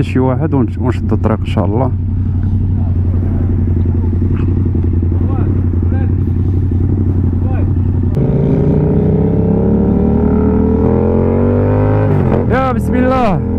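A motorcycle engine revs sharply in quick bursts.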